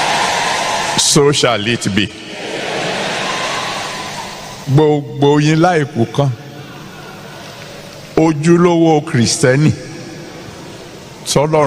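A man speaks with animation into a microphone, with pauses between phrases.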